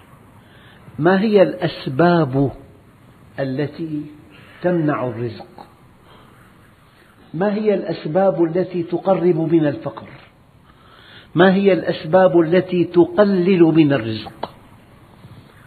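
An elderly man speaks calmly and slowly.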